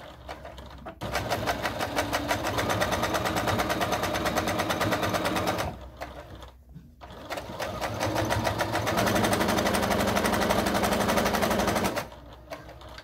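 A sewing machine stitches rapidly in steady bursts.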